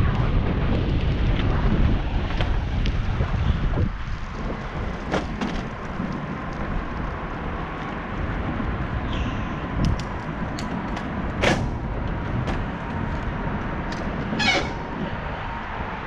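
Wind rumbles across a moving rider outdoors.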